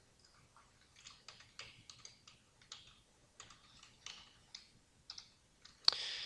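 Keyboard keys click softly in quick bursts.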